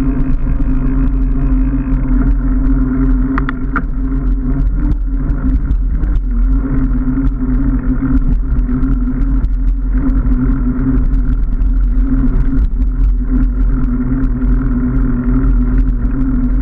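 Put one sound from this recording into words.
Bicycle tyres hum steadily on the pavement.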